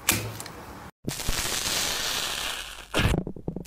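Foam crackles and fizzes softly as a finger pokes into it.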